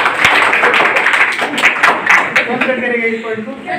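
A crowd claps loudly in a room.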